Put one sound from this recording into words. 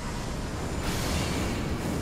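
Fireballs burst with a roaring whoosh.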